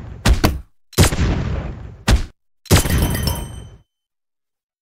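Video game gunfire pops in quick bursts.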